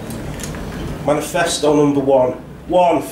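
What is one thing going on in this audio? A man reads aloud calmly into a microphone.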